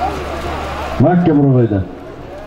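Men shout across an open field.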